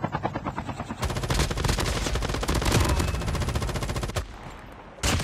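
An automatic rifle fires rapid bursts of shots.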